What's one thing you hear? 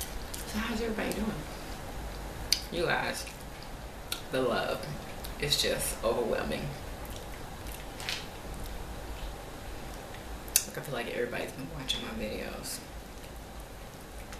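A woman bites and chews pizza close to the microphone.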